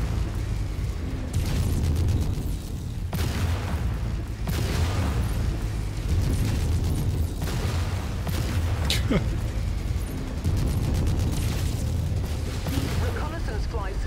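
Energy weapons fire in rapid bursts with loud crackling blasts.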